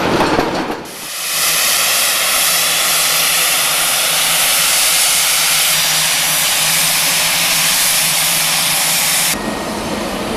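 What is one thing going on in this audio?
A steam locomotive vents steam with a loud, steady hiss.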